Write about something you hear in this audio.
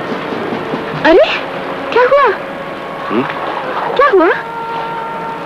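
A young woman speaks close by with expressive, rising and falling pitch.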